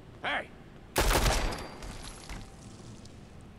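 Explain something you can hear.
A pistol fires a loud shot that echoes.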